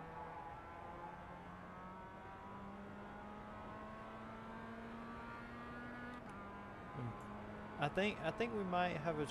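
A racing car engine hums steadily at high speed.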